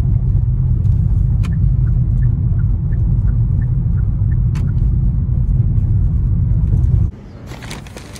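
A car engine hums low and steady as the car drives along.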